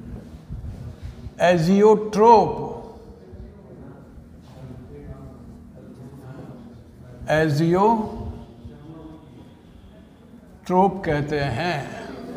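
A marker squeaks faintly on a whiteboard.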